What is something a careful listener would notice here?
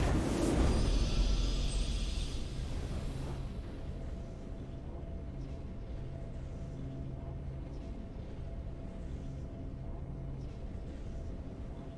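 A triumphant game fanfare swells with a deep rumble.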